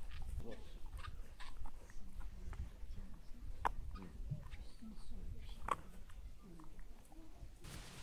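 A dog gnaws and chews on something close by.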